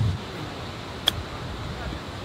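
A golf club strikes a ball with a sharp click.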